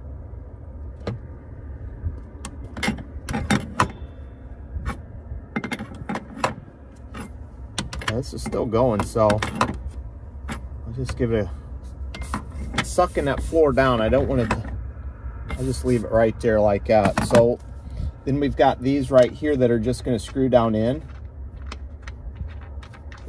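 A metal tool clicks and taps on metal parts.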